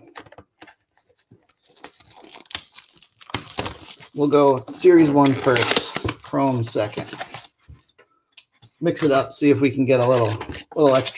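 Plastic wrapping crinkles and tears as a pack is opened.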